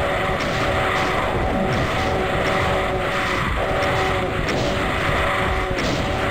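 A chainsaw revs and roars steadily.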